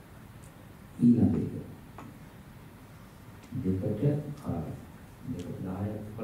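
An elderly man speaks calmly into a microphone in a quiet room.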